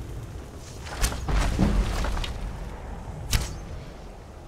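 A bow releases an arrow with a sharp twang.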